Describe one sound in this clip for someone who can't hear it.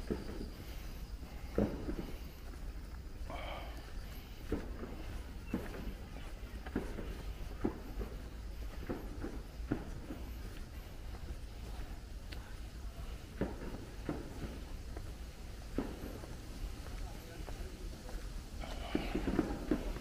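Footsteps tap steadily on a stone path outdoors.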